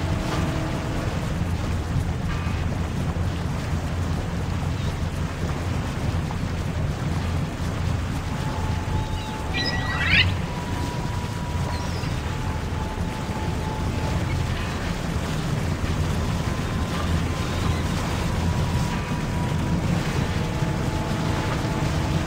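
A motorboat engine hums steadily.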